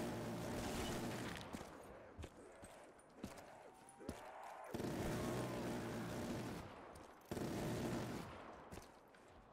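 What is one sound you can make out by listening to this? A heavy machine gun fires in long rapid bursts.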